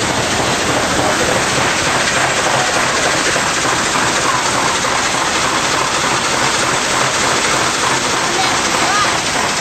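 A fire hose sprays a strong, steady, hissing jet of water.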